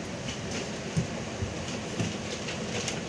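The bus body rattles and knocks now and then.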